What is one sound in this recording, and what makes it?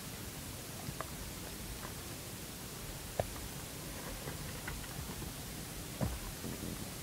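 A screwdriver clicks faintly against a plastic case.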